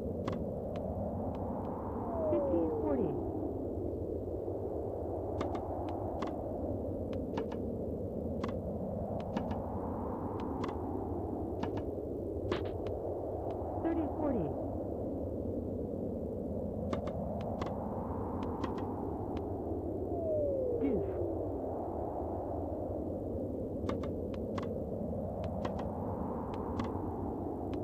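Tennis balls are struck with short, sharp pocks in a quick rally.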